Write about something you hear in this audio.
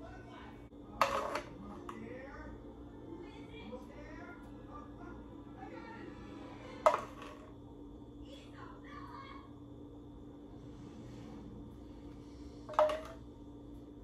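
A metal spoon clinks sharply against a saucepan.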